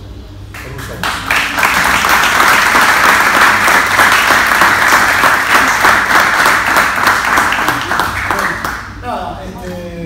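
A group of people applauds loudly indoors.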